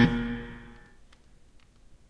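A short musical chime rings out and quickly fades.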